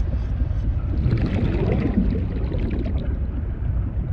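A large sea creature swims close by and lets out a deep, rising call.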